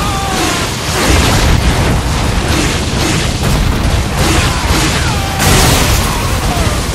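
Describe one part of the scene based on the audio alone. Fiery explosions roar and boom loudly.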